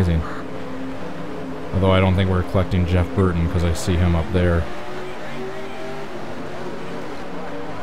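Race car engines roar steadily at high speed.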